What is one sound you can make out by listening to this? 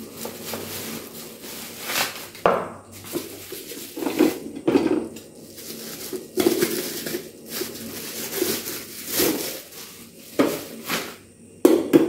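Plastic bubble wrap crinkles and rustles as it is unwrapped.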